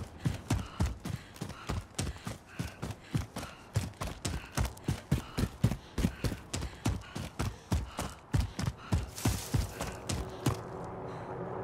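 Quick footsteps run over dry ground.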